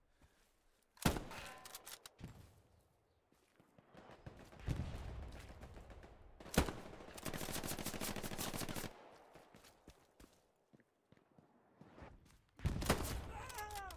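Rifle shots crack loudly, with a short echo after each.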